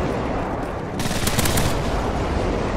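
A rifle fires a quick burst of shots.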